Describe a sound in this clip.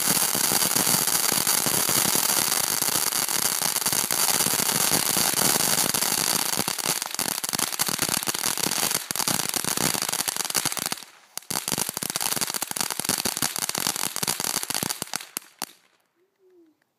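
A firework fountain hisses and roars loudly outdoors.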